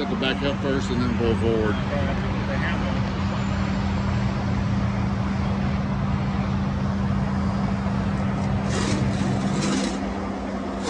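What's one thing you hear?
A truck engine idles with a steady hum.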